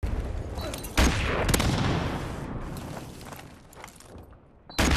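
A grenade explodes with a loud boom that slowly rumbles away.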